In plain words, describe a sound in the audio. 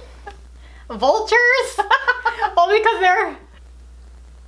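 A second young woman laughs loudly close by.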